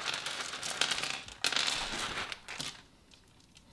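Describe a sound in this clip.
Plastic beads clatter and rattle as they are poured out.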